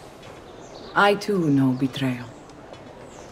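A young woman answers calmly.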